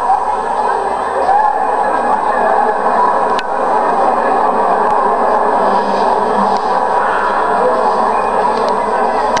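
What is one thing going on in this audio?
A crowd of men and women chatters loudly in a busy echoing hall.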